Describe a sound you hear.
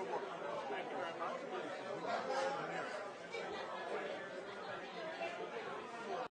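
Many people chatter in a busy room.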